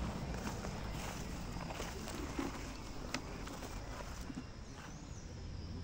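Leaves and stems rustle and snap as someone pushes through dense undergrowth.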